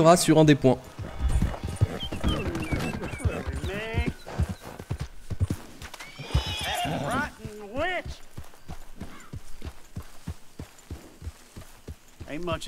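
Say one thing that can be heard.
Horse hooves thud steadily at a gallop.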